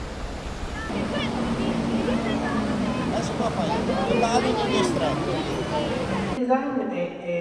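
Children chatter excitedly outdoors.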